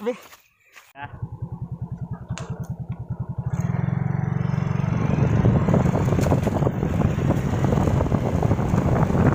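A motorcycle engine putters and revs while riding.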